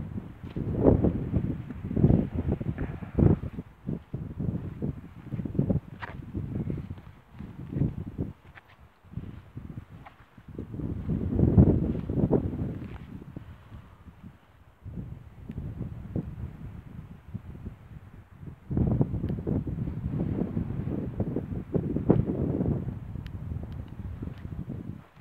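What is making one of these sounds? Wind gusts and rumbles loudly outdoors.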